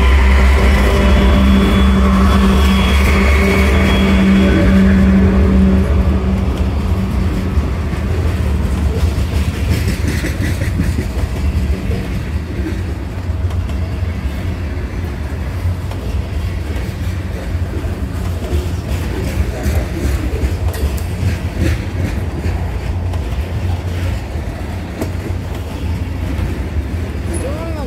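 Freight cars clatter and rumble steadily over the rails.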